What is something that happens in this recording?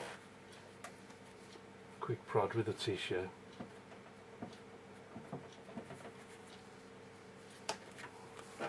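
A tissue dabs and rustles softly against paper.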